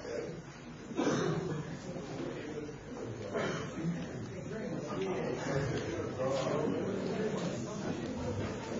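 A crowd of people chatters.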